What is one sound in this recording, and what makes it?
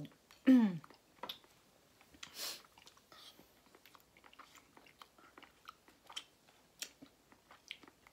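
Crisp food crunches between teeth in soft, scattered bites close by.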